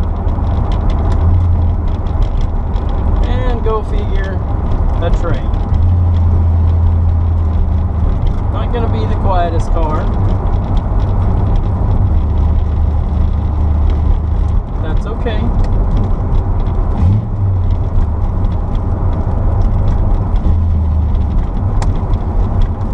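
A classic V8 sports car's engine rumbles while driving, heard from inside the car.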